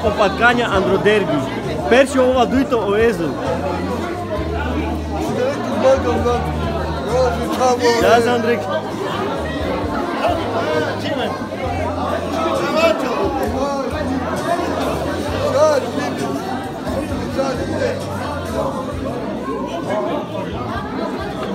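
A crowd of men and women chatter loudly all around in a large room.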